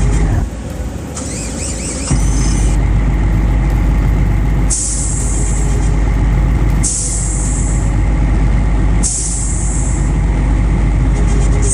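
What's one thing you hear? A truck's diesel engine idles with a deep, steady rumble.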